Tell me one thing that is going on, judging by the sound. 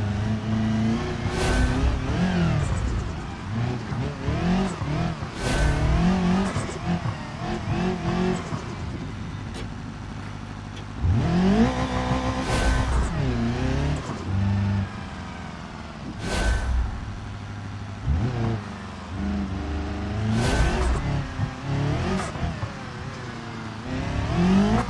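A rally car engine revs hard, rising and falling.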